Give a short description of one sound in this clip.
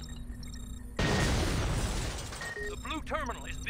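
A burst of electronic static crackles loudly.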